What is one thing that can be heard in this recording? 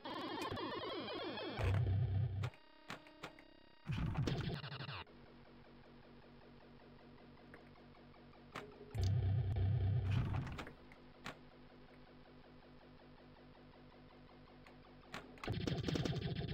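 A pinball machine plays bursts of electronic music and chimes.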